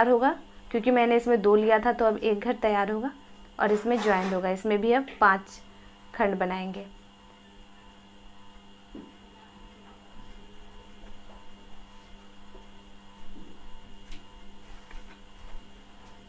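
Yarn rustles softly as it is pulled through crochet stitches.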